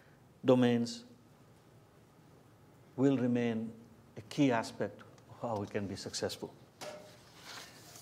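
A middle-aged man speaks in short phrases through a microphone.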